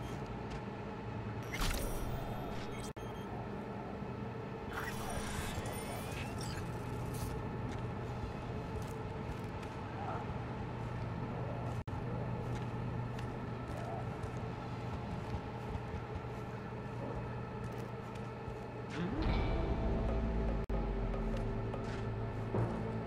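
Footsteps walk steadily along a hard floor.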